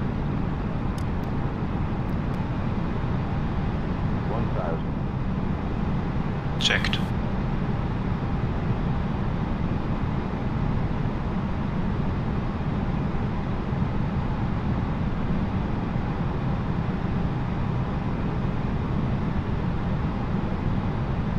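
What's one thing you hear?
A jet's engines drone steadily from inside the cockpit.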